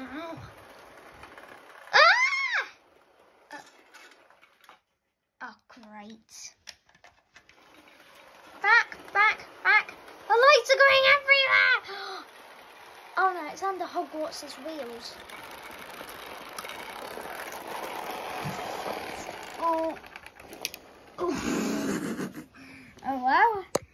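A toy train rattles along its track.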